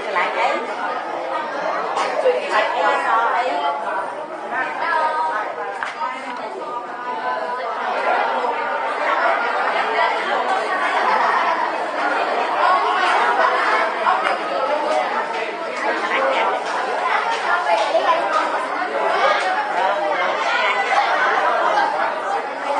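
Young children chatter and call out nearby in a busy, echoing room.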